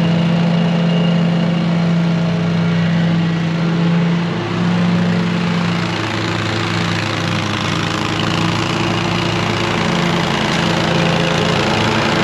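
A riding lawn mower engine drones steadily, drawing closer.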